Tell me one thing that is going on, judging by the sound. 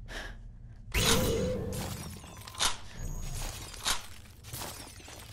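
Brittle figures shatter with sharp, glassy crashes.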